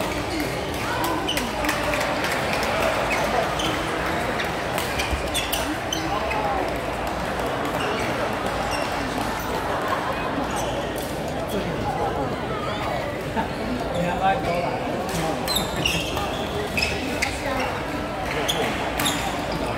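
A crowd murmurs steadily in the background.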